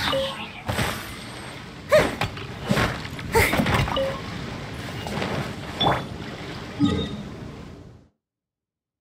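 Electric slashes and magical blasts crackle in a fight.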